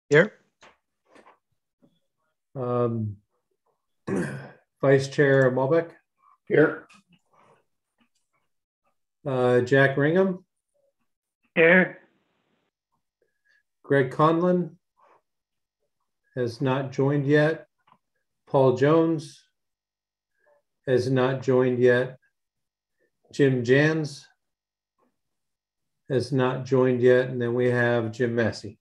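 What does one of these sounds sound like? A man speaks calmly over an online call, with pauses between phrases.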